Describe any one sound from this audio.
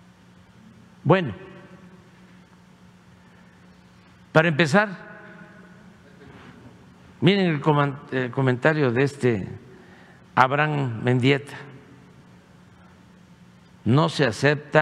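An elderly man speaks slowly and deliberately through a microphone in a large echoing hall.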